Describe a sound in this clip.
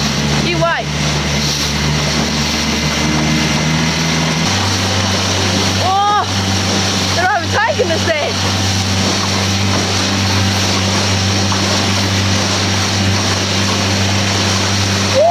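Water splashes and rushes against the hull.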